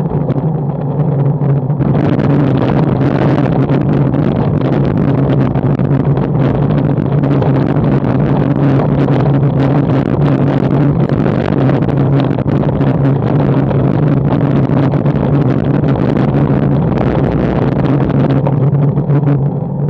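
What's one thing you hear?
Wind rushes steadily past the microphone.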